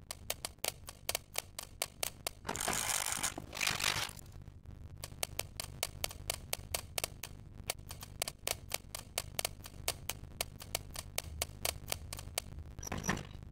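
A safe's combination dial clicks as it turns.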